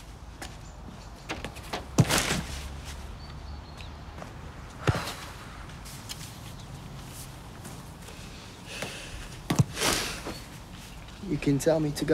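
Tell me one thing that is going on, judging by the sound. A plastic goal frame knocks and rattles.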